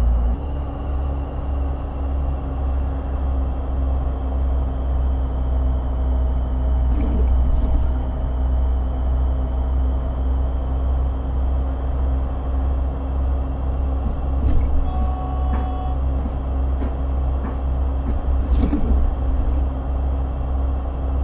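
A bus engine hums steadily with a low rumble.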